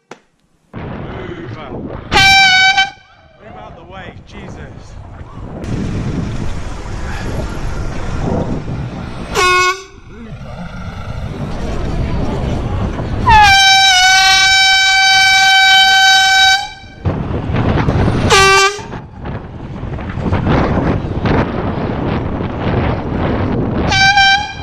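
Wind rushes past a moving bicycle.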